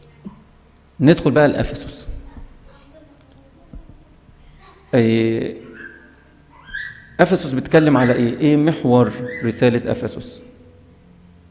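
A middle-aged man speaks with animation into a microphone in an echoing hall.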